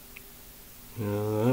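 A young man begins to sing close by.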